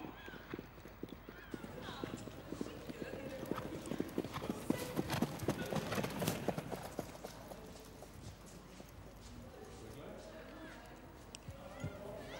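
A young woman speaks cheerfully into a microphone nearby.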